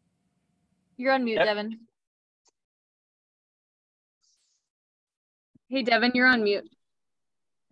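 A young woman speaks in short phrases over an online call.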